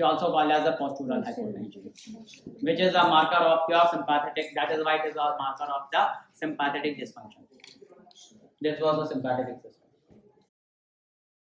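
A man lectures calmly, close and clear.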